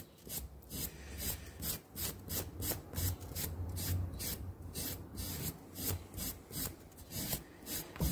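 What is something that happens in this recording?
Sandpaper rasps against wood in quick, repeated strokes.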